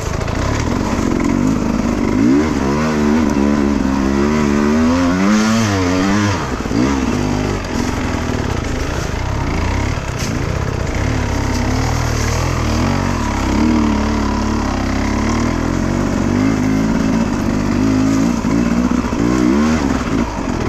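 A dirt bike engine revs up and down loudly.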